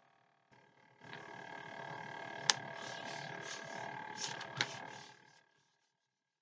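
Hands rub firmly over paper with a steady scratchy swish.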